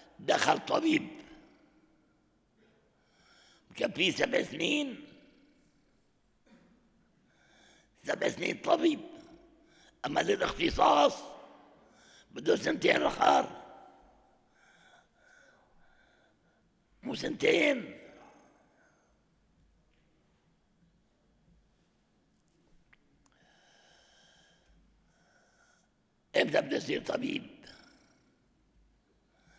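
A crowd of men chant together in short bursts in a large echoing hall.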